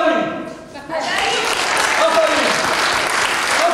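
Applause rings out through a hall.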